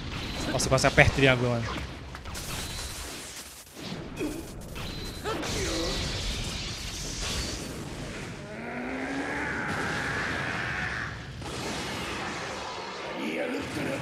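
Video game sound effects crash and crackle.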